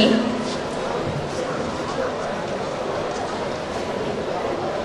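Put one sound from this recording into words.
A microphone thumps and rustles as a hand adjusts it.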